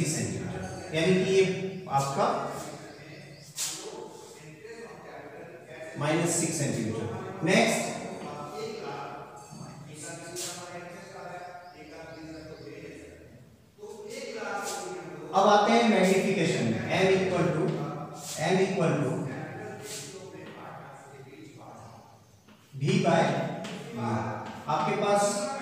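A man lectures steadily, speaking close by.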